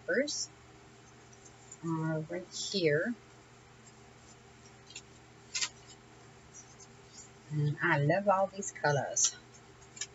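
Paper sheets rustle and crinkle as they are handled.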